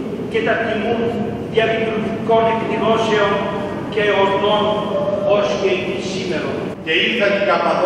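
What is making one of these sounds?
An elderly man reads out slowly into a microphone in an echoing hall.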